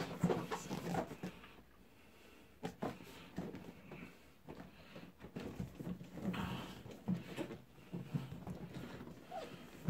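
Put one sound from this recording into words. Hands rub and tap a cardboard box, with scraping and bumping.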